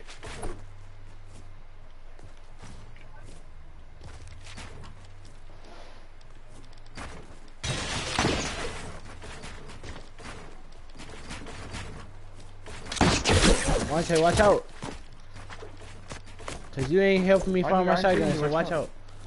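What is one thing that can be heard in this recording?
Video game building pieces snap into place with quick clicks and knocks.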